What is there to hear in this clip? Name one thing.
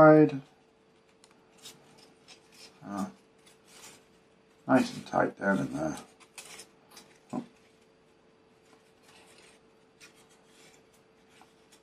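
Light wooden parts click and rattle softly as they are handled.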